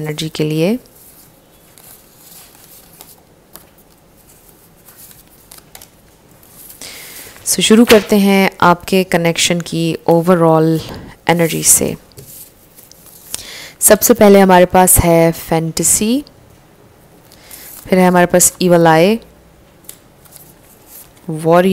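Paper cards rustle and slide against each other.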